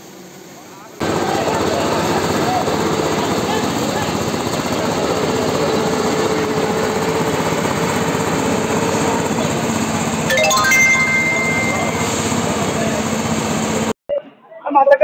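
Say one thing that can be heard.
A large blower fan roars steadily.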